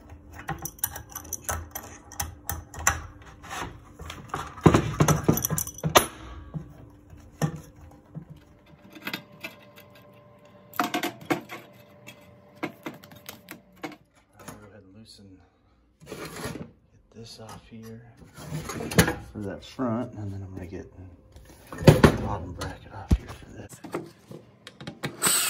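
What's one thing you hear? Hands knock and clatter metal parts and copper tubing inside a sheet-metal casing.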